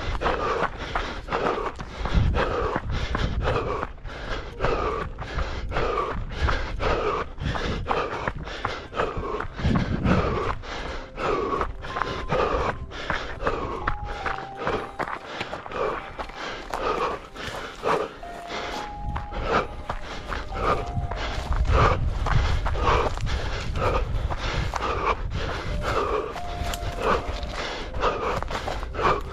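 Running footsteps crunch quickly and steadily on a dry dirt trail.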